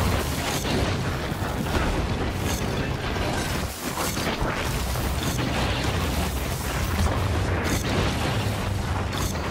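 Fiery blasts burst and crackle.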